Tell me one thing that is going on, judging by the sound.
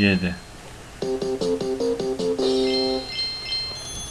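A cheerful game jingle plays for a completed level.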